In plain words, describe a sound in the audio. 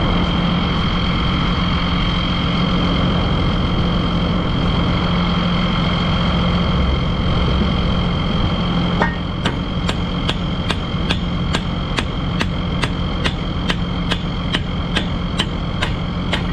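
An engine idles steadily nearby.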